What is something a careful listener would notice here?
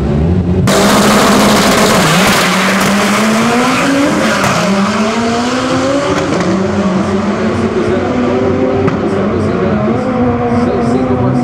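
Car engines rev up and shift gears as they speed away into the distance.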